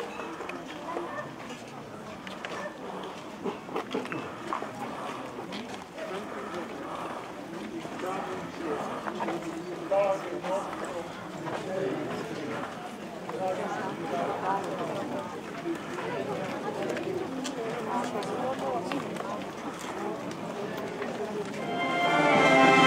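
Many footsteps shuffle on a paved road.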